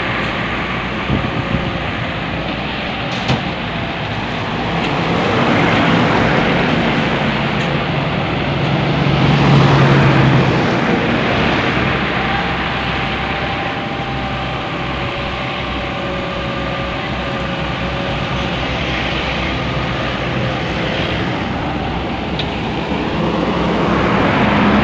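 Hydraulics whine as an excavator arm swings.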